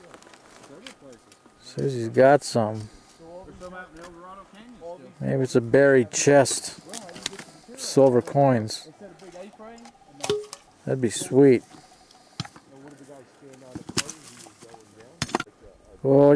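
A pick strikes rocky soil.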